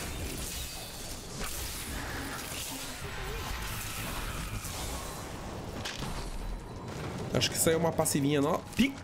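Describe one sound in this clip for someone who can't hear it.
Game sound effects chime and crash during a battle.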